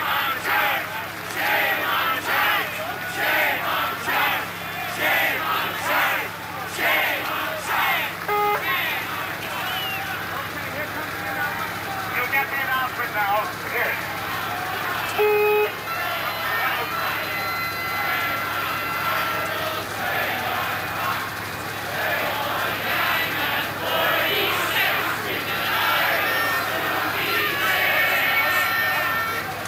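A crowd murmurs and calls out.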